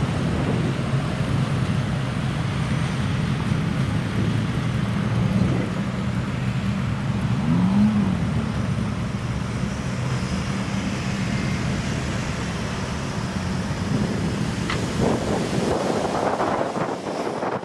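An off-road 4x4 engine labours under load as the vehicle climbs a steep slope.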